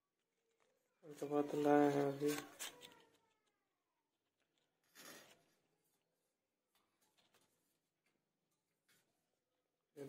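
Foil medicine packets and paper crinkle in a hand.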